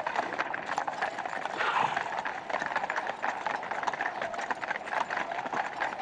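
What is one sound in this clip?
Horses' hooves clop on stone.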